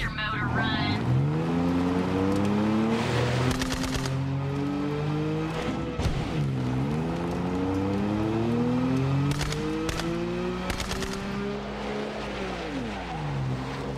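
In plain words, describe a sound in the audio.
A motorbike engine revs up and drops in pitch as it shifts gears.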